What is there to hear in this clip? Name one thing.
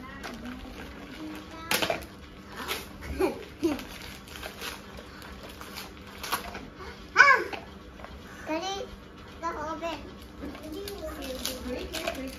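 Plastic wrapping crinkles as a toy is unwrapped.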